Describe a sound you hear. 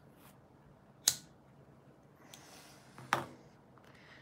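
A lighter clicks as it is flicked.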